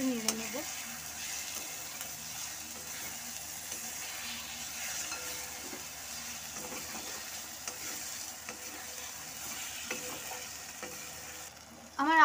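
A spatula scrapes and stirs against a metal pan.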